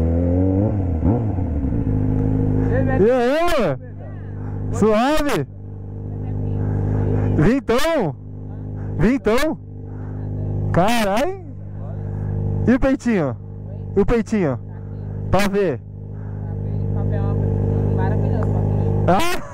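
A motorcycle engine idles with a steady, low rumble.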